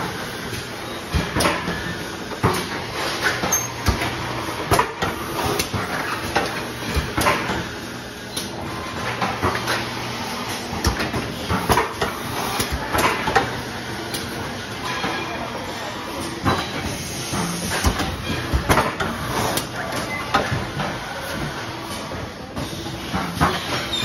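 A packaging machine clatters and hums steadily close by.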